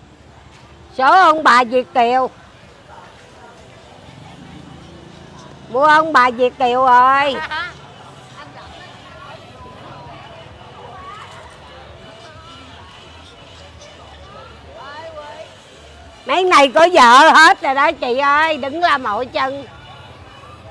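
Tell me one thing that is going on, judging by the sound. A woman speaks loudly and animatedly close by.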